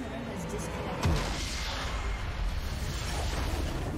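A structure explodes with a loud blast and a rumble.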